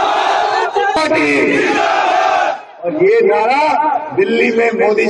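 A man gives a loud speech through a microphone and loudspeakers.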